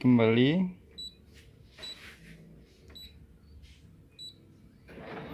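A touchscreen beeps briefly at each press.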